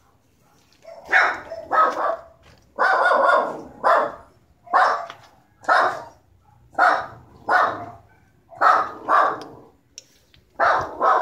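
A dog barks loudly and repeatedly nearby.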